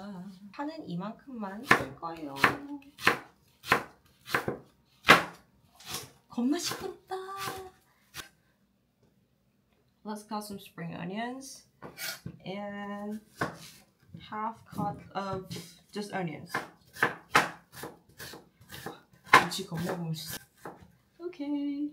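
A knife chops vegetables on a wooden board in quick, sharp knocks.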